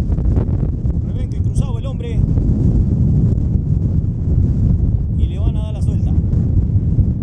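A man speaks briefly at a distance.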